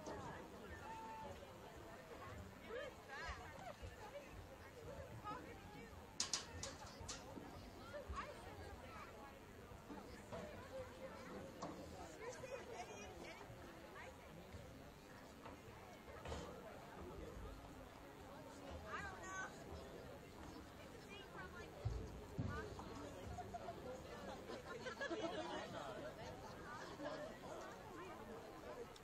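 A distant crowd murmurs and calls out outdoors.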